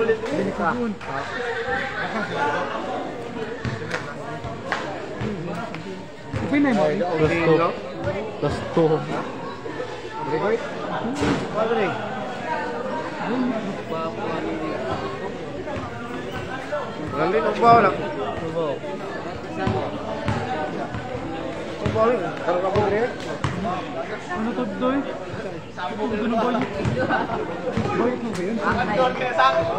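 Young men talk close by.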